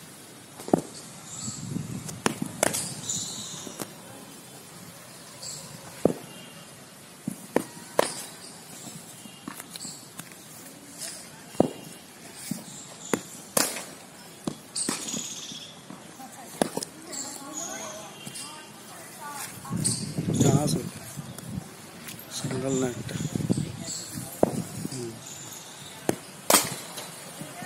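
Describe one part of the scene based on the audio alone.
A cricket bat sharply strikes a ball outdoors.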